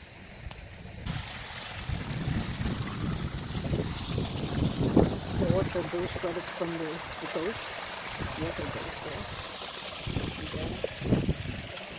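Water trickles and splashes over rocks nearby.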